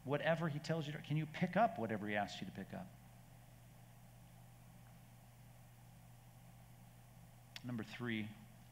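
A middle-aged man speaks earnestly through a microphone, pausing between phrases.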